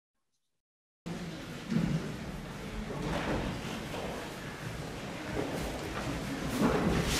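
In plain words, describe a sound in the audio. An audience murmurs and rustles in a large echoing hall.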